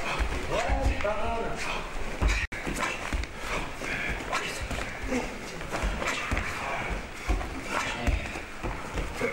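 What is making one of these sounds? Bare feet thump and shuffle on gym mats.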